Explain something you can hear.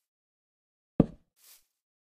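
A wooden post is set down with a short knock.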